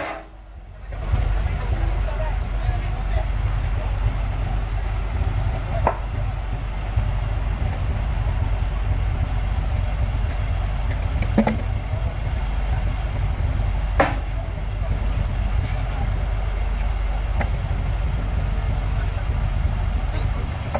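A heavy machine's engine rumbles steadily close by.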